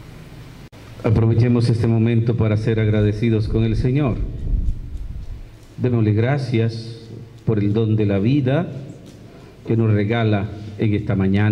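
A man speaks steadily into a microphone, heard through a loudspeaker.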